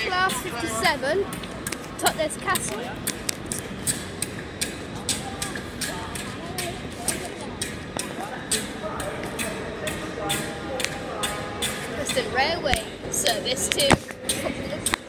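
Footsteps tap steadily on a hard floor in a large echoing hall.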